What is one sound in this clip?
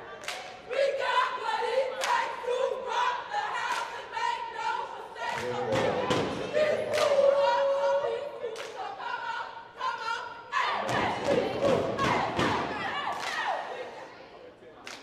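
Sneakers squeak and shoes pound on a hardwood court in a large echoing gym.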